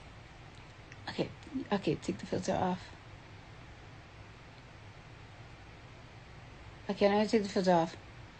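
A young woman speaks casually and close up into a phone microphone.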